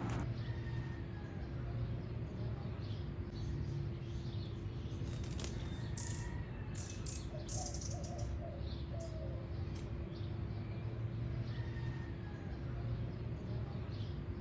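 A bird chirps softly in short bursts.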